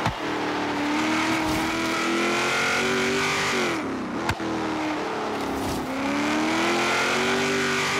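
A racing car engine revs hard, rising in pitch, drops sharply when braking, then climbs again.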